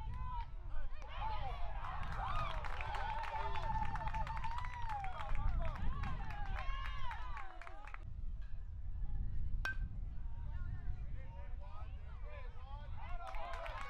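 Young boys shout and cheer outdoors.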